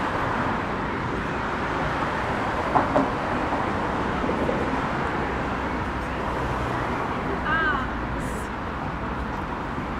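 Distant city traffic rumbles steadily outdoors.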